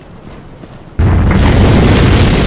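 A sudden loud gust of wind roars with blowing snow.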